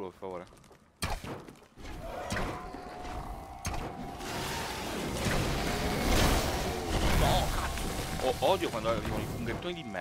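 Weapons clash and magic spells burst during a fight.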